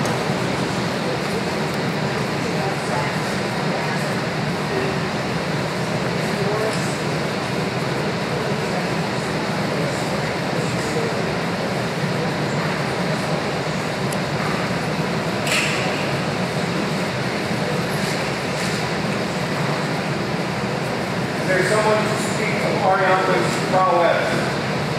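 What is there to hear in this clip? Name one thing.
A crowd murmurs quietly in a large room.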